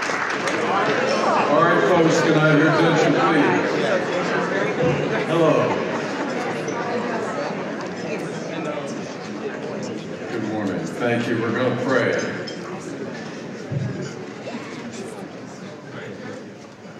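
An elderly man speaks calmly through a microphone and loudspeakers in a large hall.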